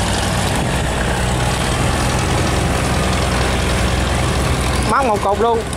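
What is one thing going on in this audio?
A boat engine chugs steadily nearby.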